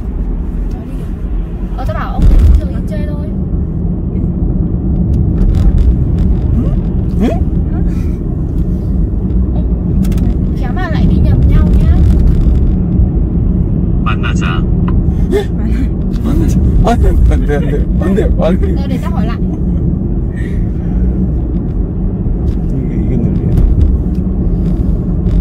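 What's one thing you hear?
A car drives steadily along a road with a low rumble.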